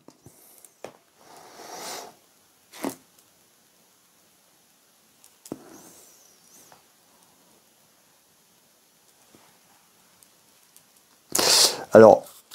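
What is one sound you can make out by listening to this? Cards rustle softly as they are handled.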